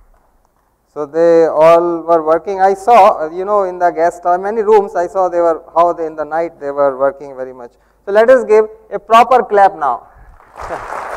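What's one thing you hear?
A man speaks into a microphone, heard through loudspeakers in a large hall.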